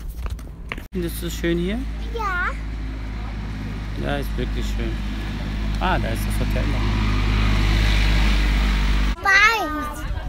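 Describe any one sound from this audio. A young girl talks close by.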